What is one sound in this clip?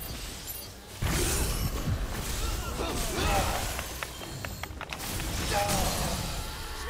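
Heavy blows thud and explode.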